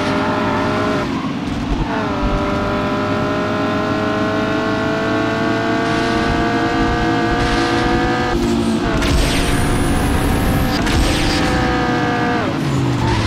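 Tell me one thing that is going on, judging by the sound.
A racing car engine roars at high speed, its pitch dropping at each gear change and then climbing again.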